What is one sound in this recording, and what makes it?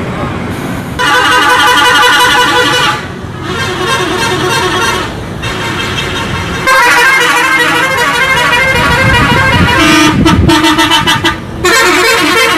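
A bus horn plays a loud, rapid musical tune.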